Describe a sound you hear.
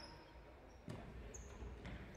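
A ball is kicked with a thud.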